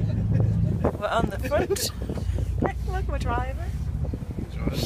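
A girl laughs and talks close by.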